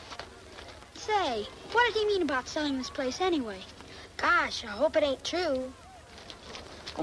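A child speaks with animation, close by.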